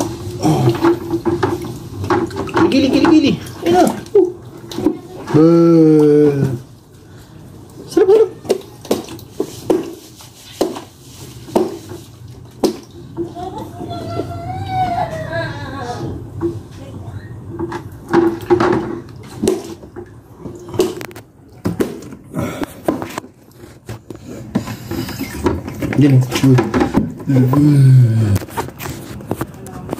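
Water splashes in a basin.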